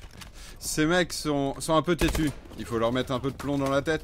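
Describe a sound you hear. A rifle fires a short burst of shots.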